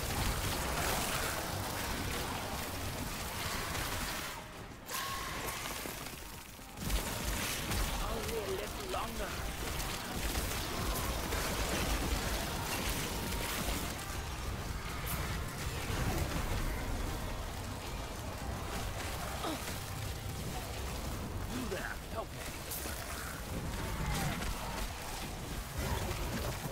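Spells crackle and blast in quick bursts of game combat.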